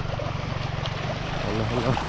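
Muddy water gurgles and rushes along a shallow ditch.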